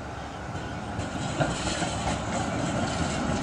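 Tram wheels squeal and rattle on the tracks.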